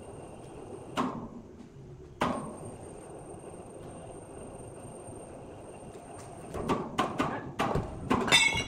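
Heavy boots thump and scrape on a large wooden block.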